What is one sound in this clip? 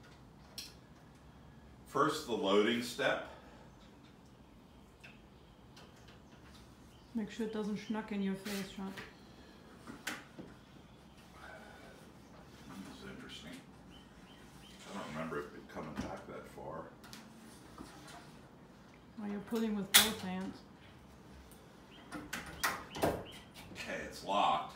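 A metal lever clanks as a man pulls it.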